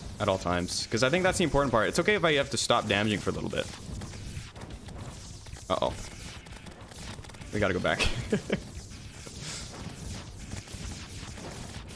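Video game weapons fire in quick, rapid bursts.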